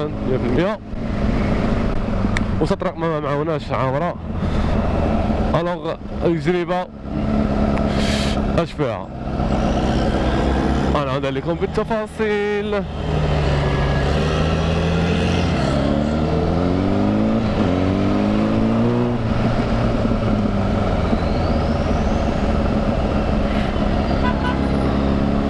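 A motorcycle engine revs up and down hard as the bike accelerates and shifts gears.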